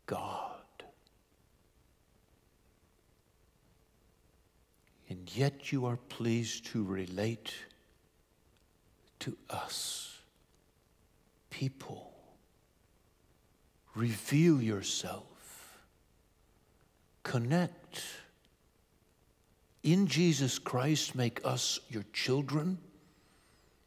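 A man speaks calmly and slowly into a microphone, with pauses, in a room that echoes a little.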